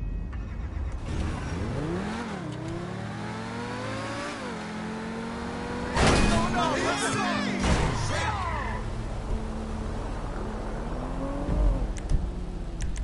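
A sports car engine revs up and down.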